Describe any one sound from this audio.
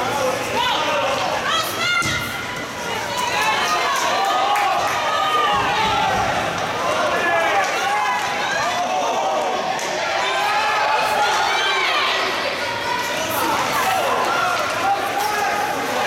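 A crowd of spectators shouts and cheers in a large echoing rink.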